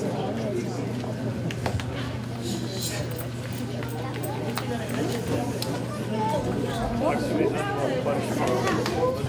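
A crowd of young children chatter and call out in a large echoing hall.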